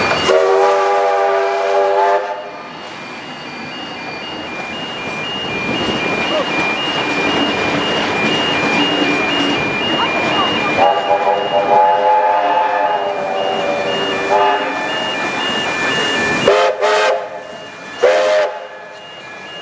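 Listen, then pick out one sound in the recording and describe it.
A steam locomotive whistle blows loudly several times.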